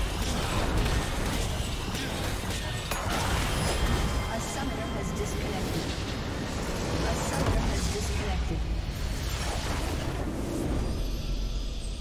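Game spell blasts and explosions crackle and boom loudly in a fight.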